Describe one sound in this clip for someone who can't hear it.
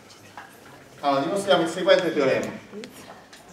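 A middle-aged man speaks loudly and briefly, a little way off.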